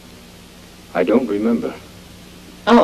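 A man speaks quietly and flatly.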